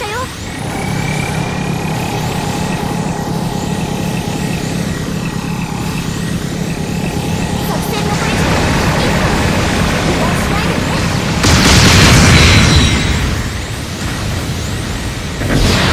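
A robot's jet thrusters roar steadily.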